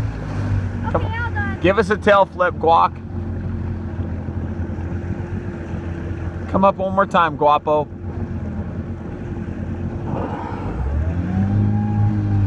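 Small waves lap and splash on open water.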